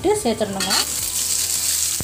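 Chopped potatoes tumble into a pan.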